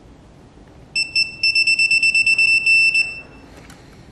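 A torque wrench beeps steadily.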